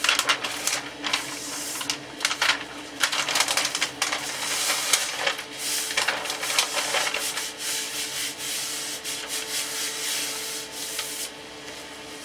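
A thin wooden veneer sheet rustles and crackles as it is bent and handled.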